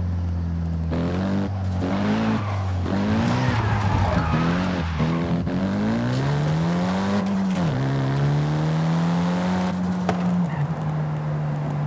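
A car engine revs hard, rising and dropping with gear changes.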